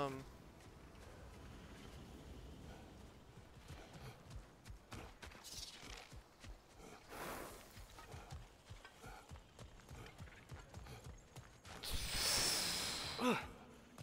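Heavy footsteps tread on grass and stone.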